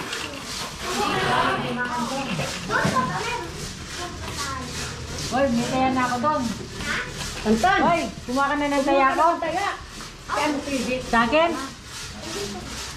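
Several people chatter in the background.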